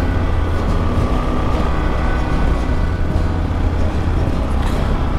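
Wind buffets a microphone in loud gusts.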